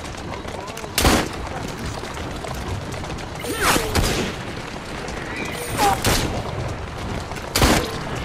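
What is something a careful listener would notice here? Gunshots ring out sharply, one every couple of seconds.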